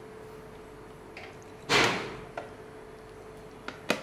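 A glass bowl knocks against a plate as it is set down.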